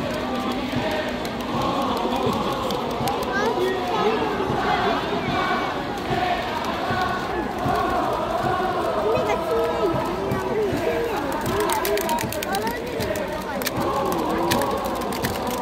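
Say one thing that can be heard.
A crowd claps in rhythm.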